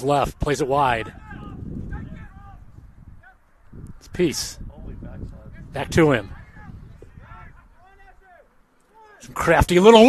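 Young players shout loudly to each other across an open field.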